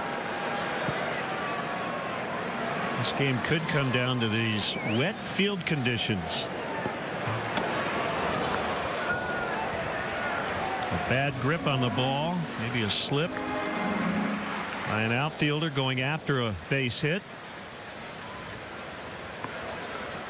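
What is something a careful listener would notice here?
A stadium crowd murmurs steadily outdoors.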